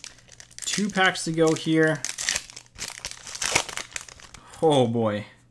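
A foil wrapper crinkles and tears open up close.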